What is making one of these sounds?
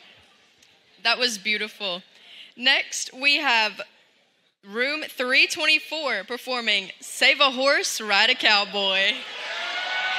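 A woman announces through a loudspeaker in a large echoing hall.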